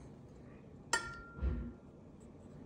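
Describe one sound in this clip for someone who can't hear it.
A metal spoon clinks against a ceramic bowl.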